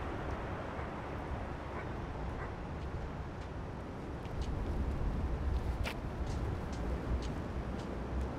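Footsteps crunch on wet pavement.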